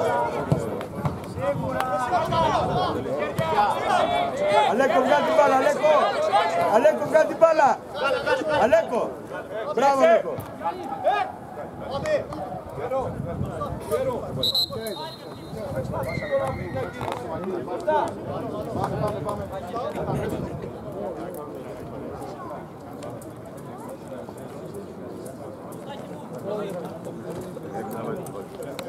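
Men shout and call out across an open football pitch.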